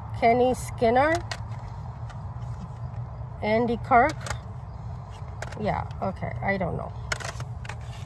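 Record sleeves rustle as they are flipped.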